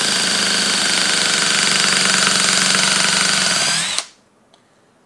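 An impact driver whirs loudly, driving a long screw into wood, then stops abruptly.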